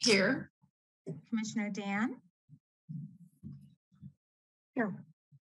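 An elderly woman speaks calmly over an online call.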